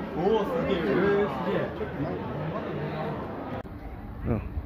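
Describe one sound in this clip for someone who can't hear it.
Several people talk indoors in a murmuring crowd.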